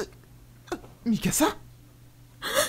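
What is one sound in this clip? A young man groans through clenched teeth.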